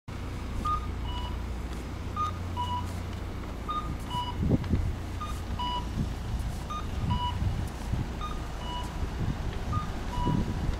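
A pedestrian crossing signal chimes in a steady, repeating two-tone pattern.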